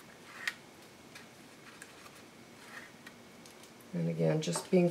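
Stiff paper rustles and taps softly as it is handled.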